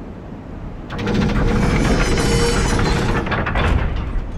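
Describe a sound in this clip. A heavy lever grinds loudly as it is pushed.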